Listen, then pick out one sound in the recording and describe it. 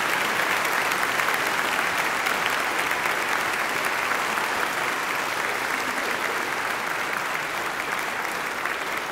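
An audience applauds steadily in a large hall, slowly fading.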